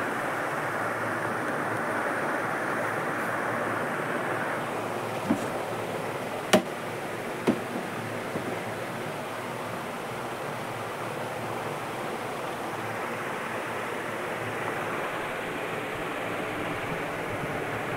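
Water in a fish tank bubbles and hums steadily.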